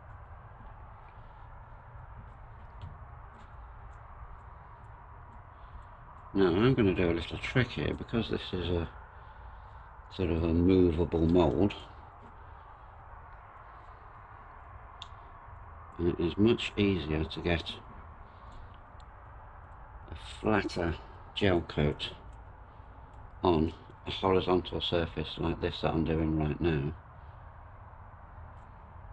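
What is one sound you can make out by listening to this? A paintbrush strokes thick paint onto a board.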